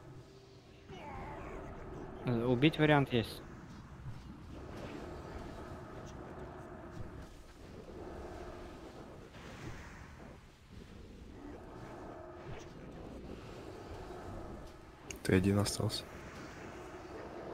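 Fantasy spell effects hum and whoosh in a game battle.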